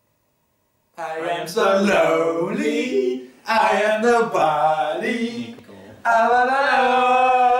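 Young men laugh loudly and talk over one another.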